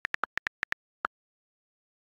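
Keys click quickly as someone types.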